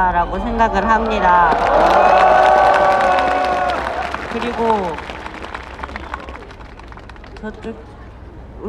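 A teenage boy speaks loudly into a microphone, heard through a loudspeaker outdoors.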